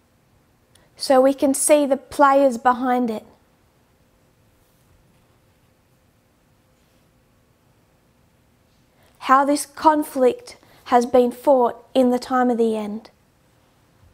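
A woman speaks calmly into a close microphone, in short bursts with long pauses.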